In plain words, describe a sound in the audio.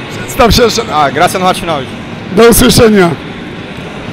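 A man speaks close into a microphone in an echoing hall.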